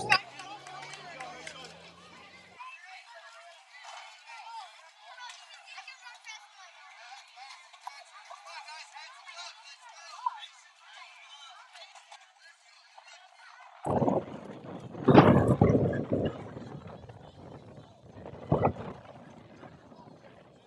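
Children shout and chatter at a distance outdoors.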